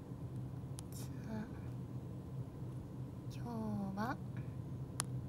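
A young woman speaks softly and calmly, close to the microphone.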